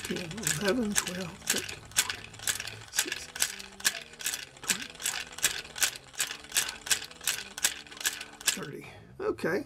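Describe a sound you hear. A small metal mechanism clicks rapidly as its knob is turned by hand.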